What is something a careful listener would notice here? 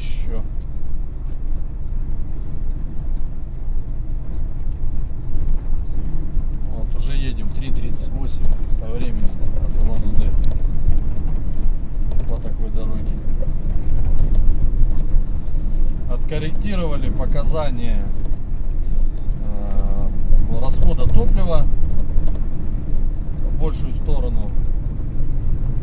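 Tyres rumble over a rough, bumpy road.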